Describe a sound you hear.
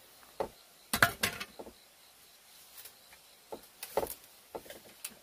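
Bamboo poles knock and clatter against each other.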